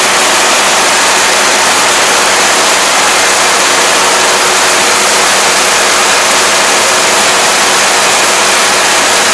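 Stalks of grain rustle and crackle as a combine harvester cuts through them.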